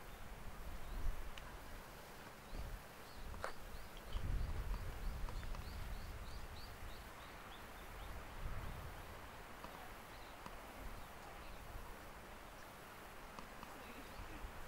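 Wind blows in gusts across the microphone outdoors.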